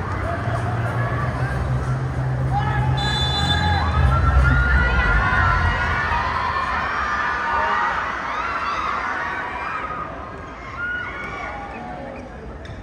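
A large crowd in an echoing arena cheers and chatters loudly.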